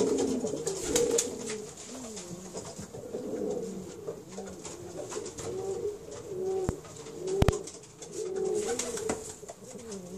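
A pigeon coos repeatedly close by.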